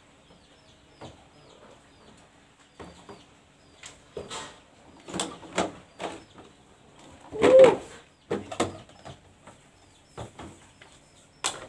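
Plastic bottles knock and clatter against a table.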